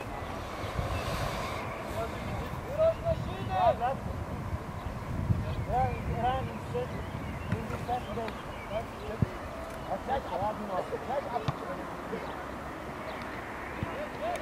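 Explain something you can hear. Young men shout to each other across an outdoor field, far off.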